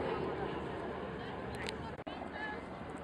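An aircraft engine drones overhead.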